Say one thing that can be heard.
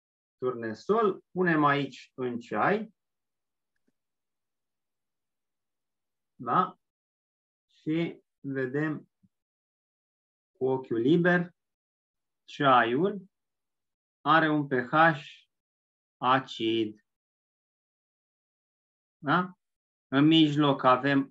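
A middle-aged man speaks calmly through a microphone in an online call, with pauses.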